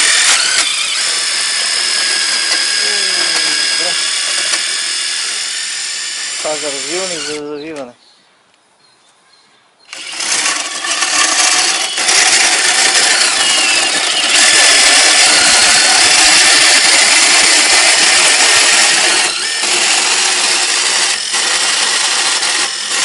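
A power drill whirs steadily as it spins a long rod into wood.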